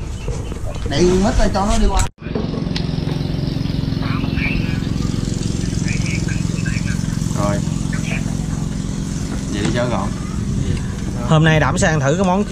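Men talk casually nearby.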